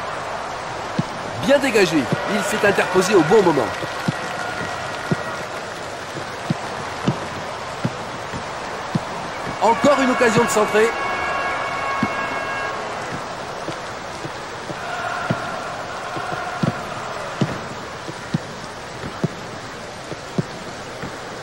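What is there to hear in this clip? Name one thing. A football is kicked with short dull thuds.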